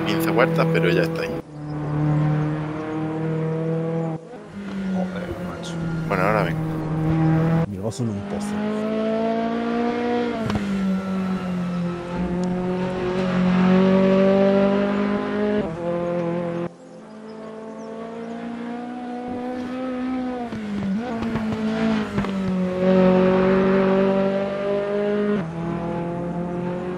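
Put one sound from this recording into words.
A race car engine revs high and drones, rising and falling in pitch as it shifts gears.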